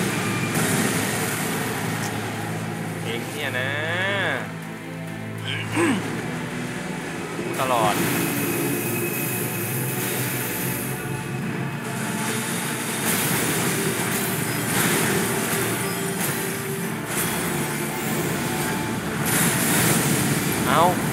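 Magical blasts roar and crackle repeatedly.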